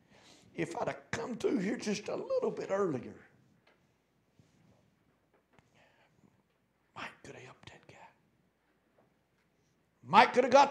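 An elderly man preaches with animation through a microphone, pausing between phrases.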